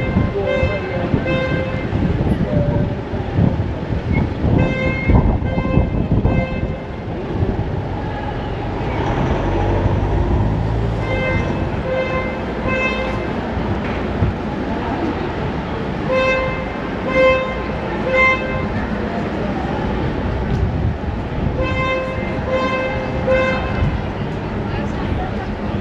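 Footsteps tap on a paved street.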